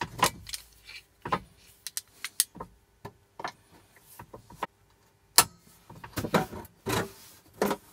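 Pliers grip and bend thin sheet metal with creaks and clicks.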